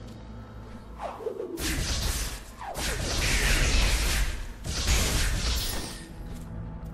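Airy whooshes sweep past in loud bursts.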